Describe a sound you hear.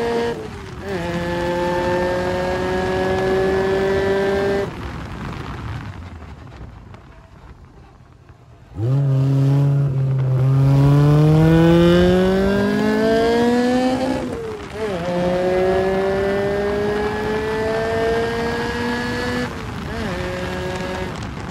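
A race car engine roars loudly close by, its pitch rising through the gears.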